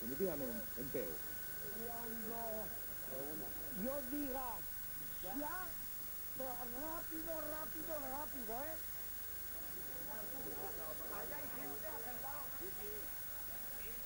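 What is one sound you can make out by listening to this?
A middle-aged man shouts angrily up close.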